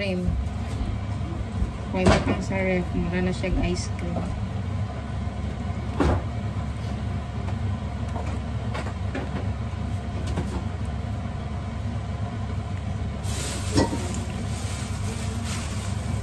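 A spatula stirs and scrapes through thick batter in a pot.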